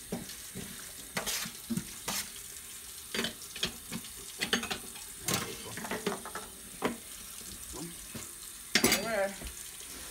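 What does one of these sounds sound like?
Dishes clink and scrape in a sink.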